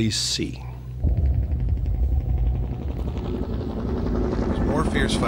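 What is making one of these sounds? Helicopters fly past with a low, steady chopping rumble.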